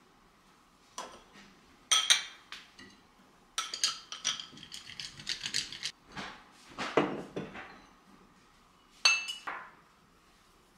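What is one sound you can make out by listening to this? Ceramic bowls and cups clink as they are set down on a cloth.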